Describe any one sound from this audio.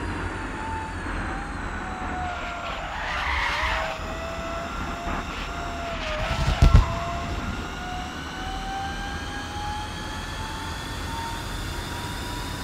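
A sports car engine whines at high speed, dipping and then rising steadily in pitch.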